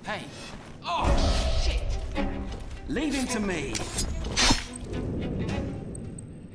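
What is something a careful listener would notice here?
Metal blades clash and thud in a close fight.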